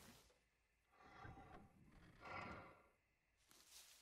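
A tractor snorts loudly.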